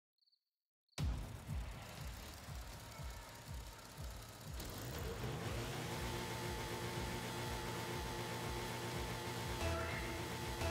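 Car engines rumble and idle.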